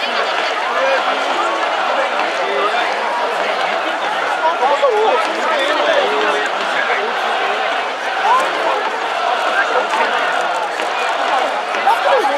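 A large stadium crowd chants and cheers steadily throughout.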